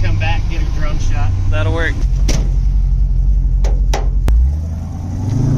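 An old truck engine rumbles steadily while driving.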